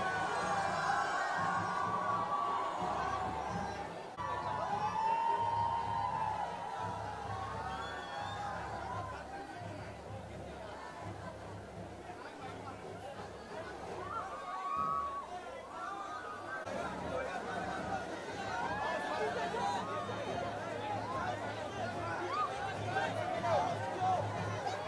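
Young men and women cheer and call out loudly nearby.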